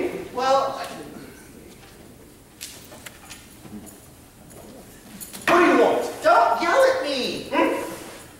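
A man speaks loudly and expressively in an echoing hall.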